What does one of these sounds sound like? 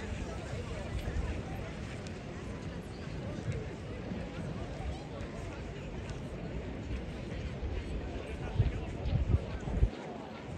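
A crowd murmurs outdoors in wind.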